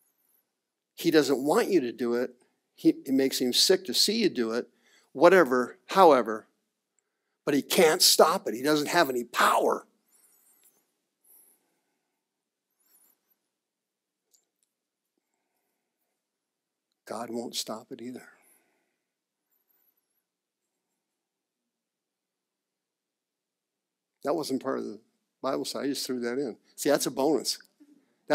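A man speaks with animation in a quiet room, pausing between phrases.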